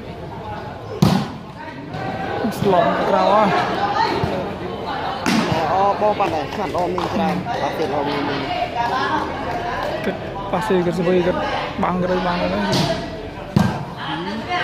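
A ball is kicked with sharp thumps.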